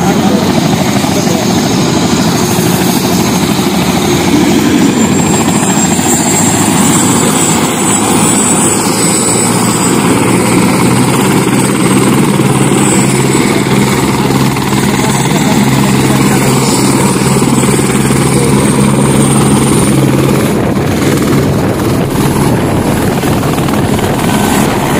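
A helicopter engine roars loudly nearby.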